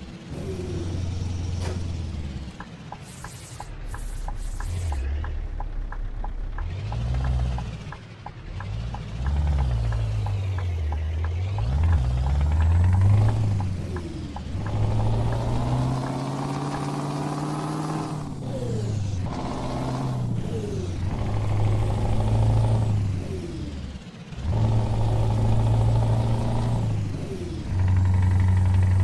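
A truck engine rumbles low, rising and falling in pitch as it changes gear.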